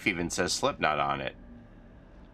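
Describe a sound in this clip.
An older man speaks with animation close to a microphone.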